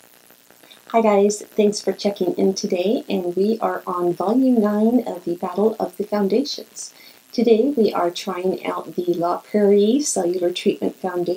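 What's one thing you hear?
A middle-aged woman speaks cheerfully and close to a microphone.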